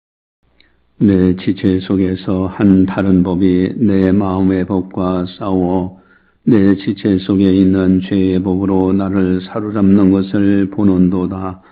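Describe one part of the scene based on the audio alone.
A middle-aged man speaks steadily into a microphone, heard through a loudspeaker.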